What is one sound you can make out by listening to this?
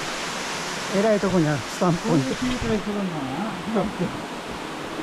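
A man talks briefly close by.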